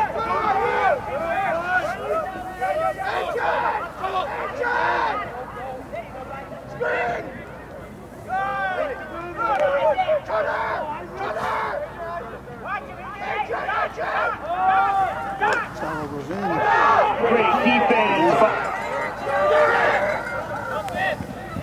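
Young men shout to each other across an open field.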